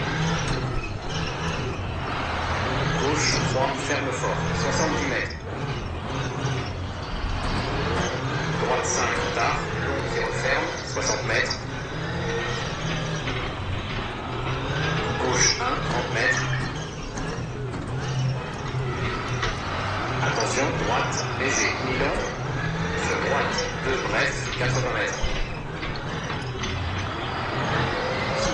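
A rally car engine roars and revs through gear changes.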